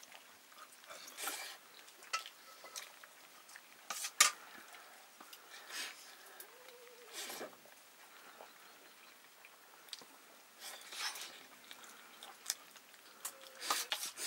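A young man chews and smacks his lips close by.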